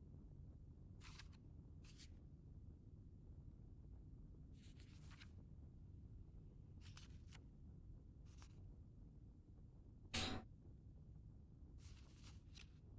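Paper rustles softly under a finger.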